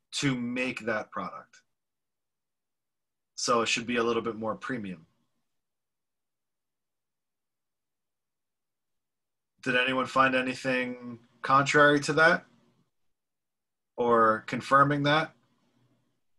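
A man speaks calmly in short phrases, close to a microphone, heard through an online call.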